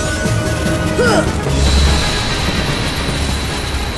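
A sword clangs against a creature in a burst of electric crackling.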